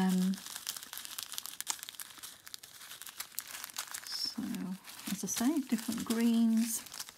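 Small beads rattle inside a plastic bag.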